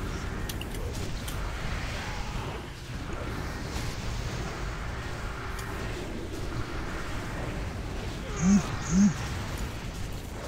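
Spell effects whoosh and crackle in a busy fantasy battle.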